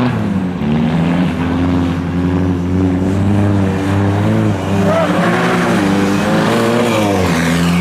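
Tyres screech on tarmac as a car slides through a bend.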